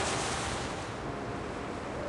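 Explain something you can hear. Sleigh runners hiss over snow.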